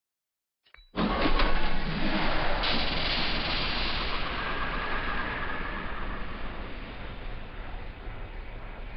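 A rocket booster roars with a steady rushing blast, slowly fading.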